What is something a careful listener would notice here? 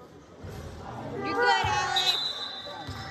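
Basketball shoes squeak sharply on the court.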